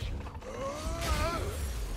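Ice crackles and shatters in a burst.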